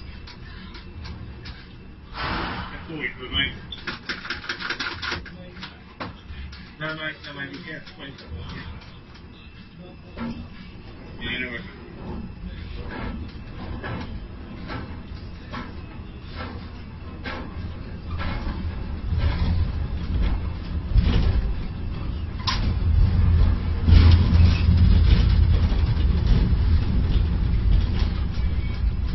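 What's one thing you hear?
A crane's motors hum and rumble, growing louder as a container is hoisted.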